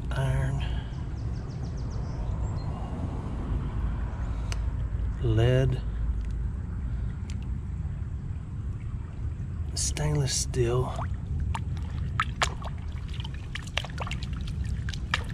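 A gloved hand splashes and swishes through shallow water.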